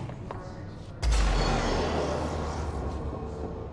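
Heavy doors swing open with a loud whoosh.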